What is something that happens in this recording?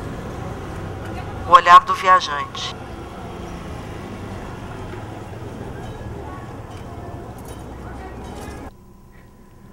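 Faint street noise murmurs in the background.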